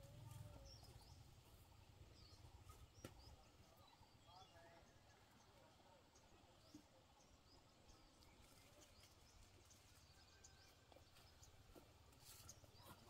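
Tomato plants rustle as fruit is picked from the vines.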